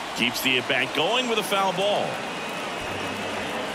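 A crowd cheers loudly.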